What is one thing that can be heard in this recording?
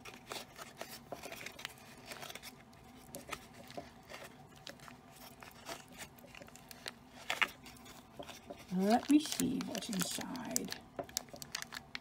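Soft slime squishes between fingers.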